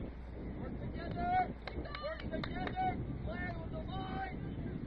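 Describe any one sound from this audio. Young players shout and call out to each other outdoors in the distance.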